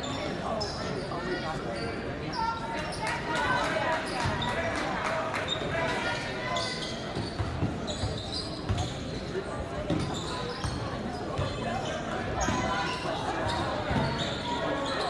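A crowd murmurs and chatters throughout a large echoing gym.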